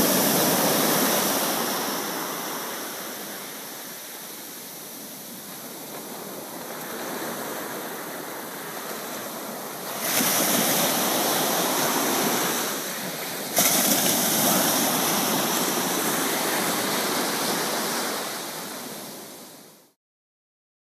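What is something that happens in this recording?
Small waves wash up and break on a sandy shore.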